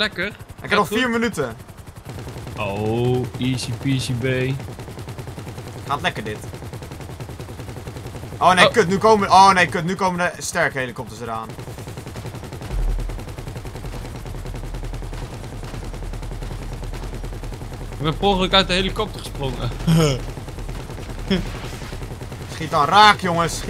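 A helicopter's rotor thrums steadily.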